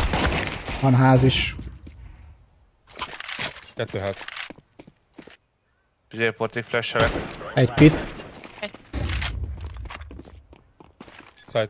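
Rifle shots crack in quick bursts.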